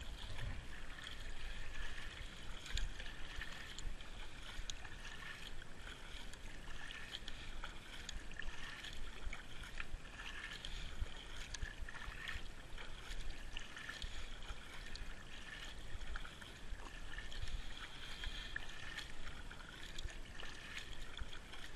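Water laps against a kayak's hull.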